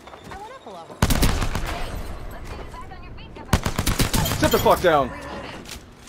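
Rapid gunshots fire in sharp bursts.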